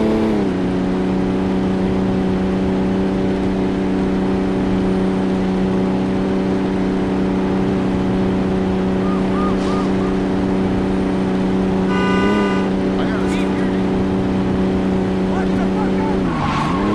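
A car engine drones steadily at speed.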